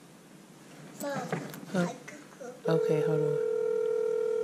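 A young boy nearby calls out excitedly.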